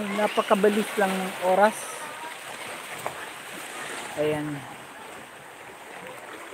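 Gentle waves lap against rocks.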